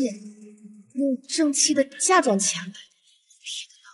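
A young woman speaks in a sulky, complaining voice.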